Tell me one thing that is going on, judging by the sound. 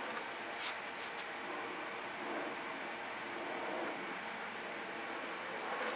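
A stiff card scrapes across a wet surface.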